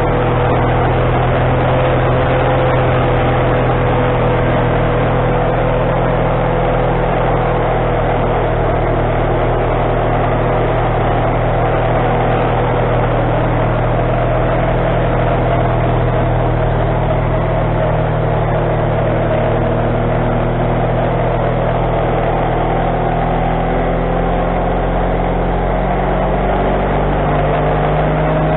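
A band saw whines as it cuts through a log.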